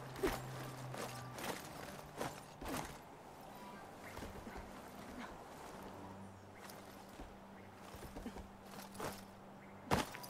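A character climbs a wooden pole with creaking and scraping.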